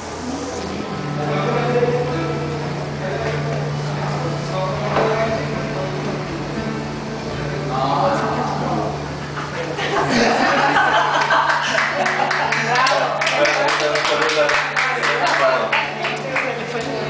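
A keyboard plays a steady, sustained chord through loudspeakers.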